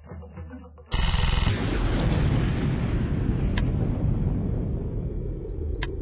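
An explosion booms and slowly fades away.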